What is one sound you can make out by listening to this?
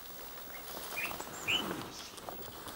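Young lions give short squeals as they play nearby.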